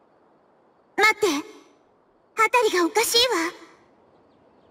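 A young girl exclaims with alarm, close by.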